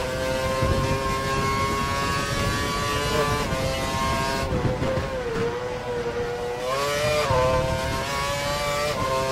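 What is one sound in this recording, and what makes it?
A Formula One car's high-revving V8 engine screams at speed.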